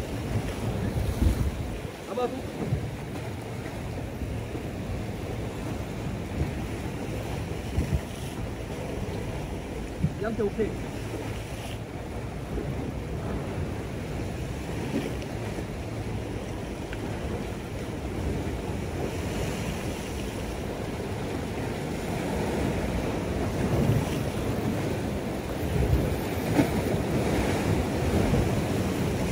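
Wind blows steadily across open water outdoors.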